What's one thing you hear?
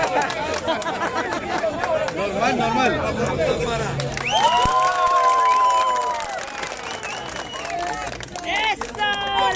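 A crowd of adults chatters and cheers outdoors.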